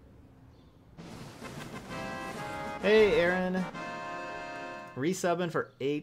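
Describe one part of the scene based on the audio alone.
A short, bright jingle plays as an alert.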